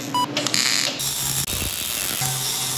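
A welding arc crackles and hisses.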